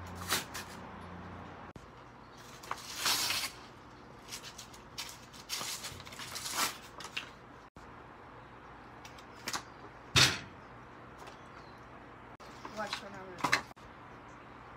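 A plastic wrapper crinkles and rustles up close.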